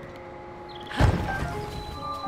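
Something lands on the ground with a heavy thud.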